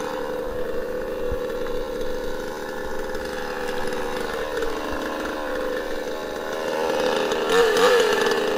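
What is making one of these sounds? A two-stroke chainsaw idles.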